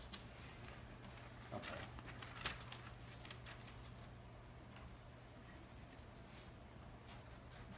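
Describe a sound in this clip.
Paper rustles softly in a person's hands.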